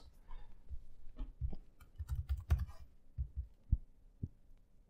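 A computer keyboard clicks as someone types.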